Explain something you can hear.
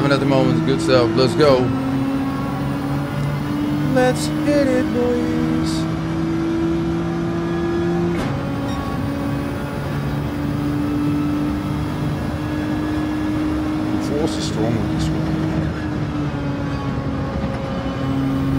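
A racing car engine drones and climbs in pitch, dropping briefly at each gear change.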